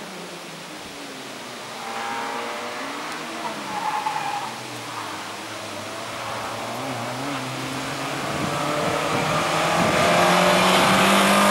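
A second rally car engine approaches, rising in pitch and growing louder.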